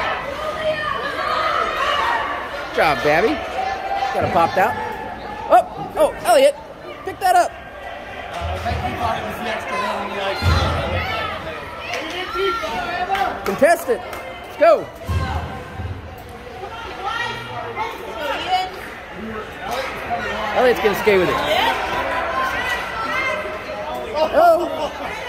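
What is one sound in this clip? Men and women chatter and call out nearby in a large echoing hall.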